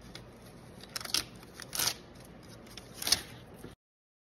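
Plastic tape crackles as it is peeled off.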